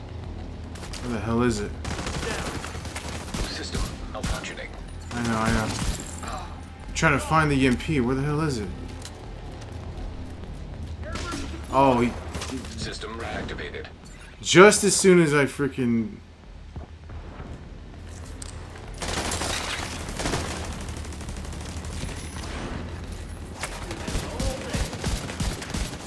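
Rifle shots crack in bursts.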